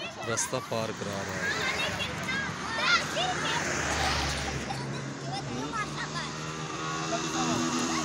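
Children chatter and call out nearby, outdoors.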